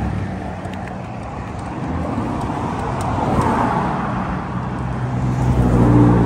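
Cars drive past on a nearby street with a steady rumble.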